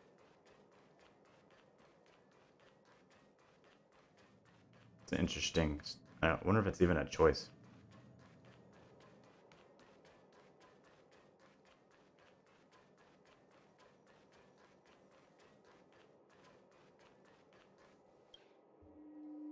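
Quick light footsteps patter on a hard floor.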